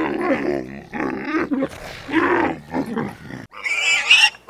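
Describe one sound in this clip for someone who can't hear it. A camel grunts and groans.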